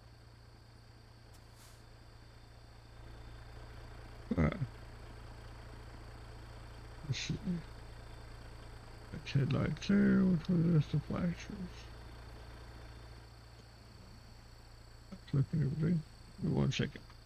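A truck engine idles with a low, steady rumble.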